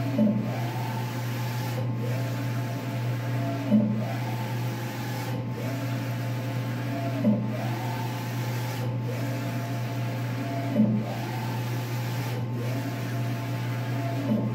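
A printer head whirs back and forth across the carriage at a regular pace.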